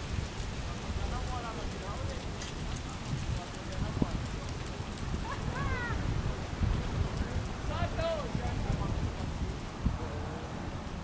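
Men call out and talk across an open field.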